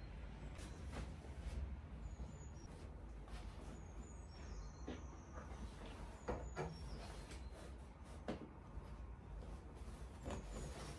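Soft thumps sound as pillows and bedding are handled.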